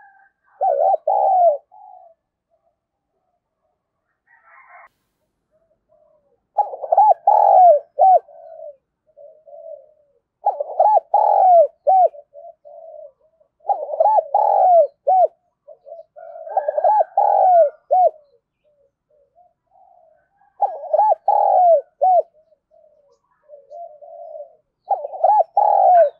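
A dove coos in repeated soft, throaty phrases, close by.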